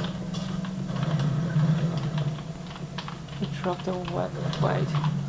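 Game sounds and effects play through small desktop speakers.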